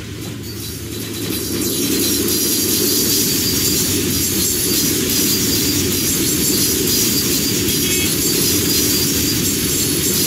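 Metal wheels squeal against the rails.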